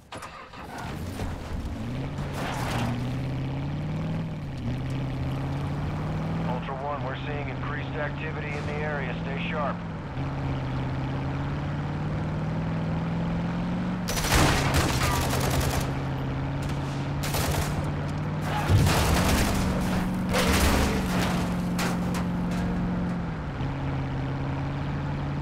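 A truck engine roars steadily and shifts through gears as it drives.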